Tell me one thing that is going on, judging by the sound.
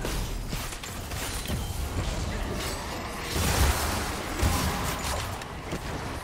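Fantasy spell effects whoosh and crackle in a hectic battle.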